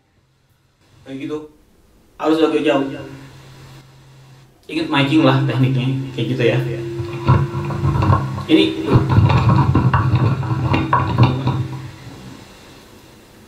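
A young man talks with animation through a microphone and loudspeaker.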